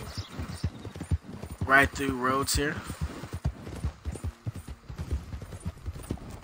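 Horse hooves thud steadily on a dirt road.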